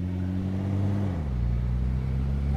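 A car engine drops in pitch as the car shifts gear.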